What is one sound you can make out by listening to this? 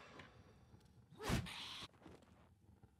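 A sword swishes and strikes.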